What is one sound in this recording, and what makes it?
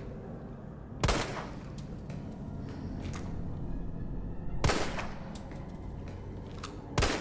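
A handgun fires single shots, ringing out in a room.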